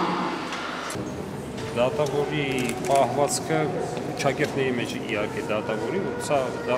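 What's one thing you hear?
A young man speaks quietly up close in a busy hall.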